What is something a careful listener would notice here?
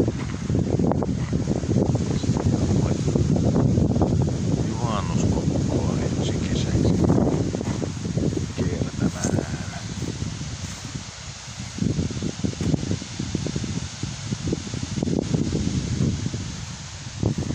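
A river rushes over rocky rapids.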